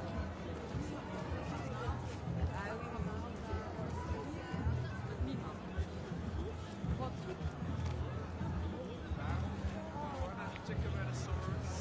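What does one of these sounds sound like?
Footsteps of many people shuffle on the street.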